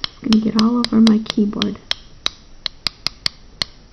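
A paintbrush brushes softly across paper.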